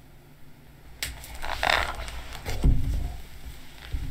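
Pages of a book flutter as they are flipped.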